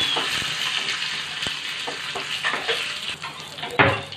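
A spoon clinks and stirs in a small metal pot.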